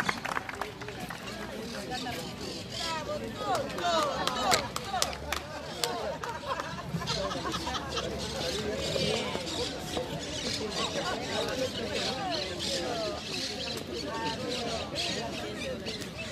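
Many men and women chatter nearby.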